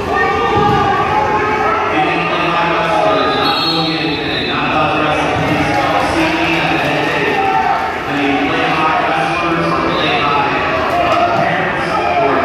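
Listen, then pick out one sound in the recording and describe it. A man calls out loudly in a large echoing hall.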